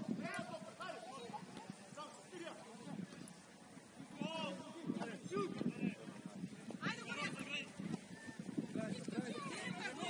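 Young men shout and call to each other across an open field outdoors.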